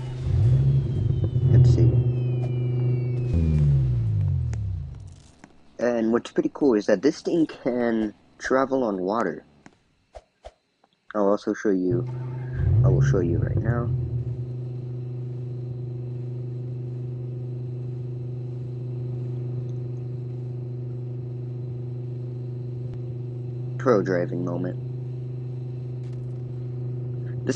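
A tank engine rumbles with a steady low drone.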